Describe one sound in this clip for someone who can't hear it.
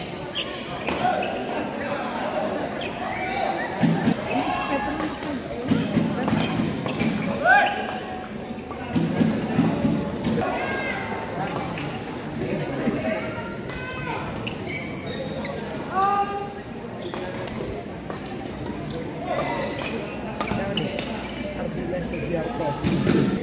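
Sneakers squeak sharply on a court floor.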